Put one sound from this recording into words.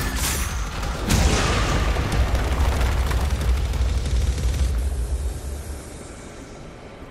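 A loud shattering explosion booms and rumbles.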